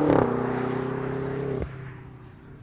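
A twin-turbo V8 SUV accelerates away.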